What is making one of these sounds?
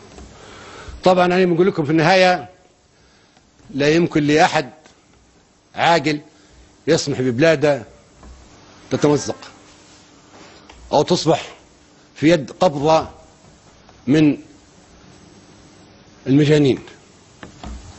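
An elderly man speaks slowly and forcefully in short, loud bursts with long pauses, heard through a microphone.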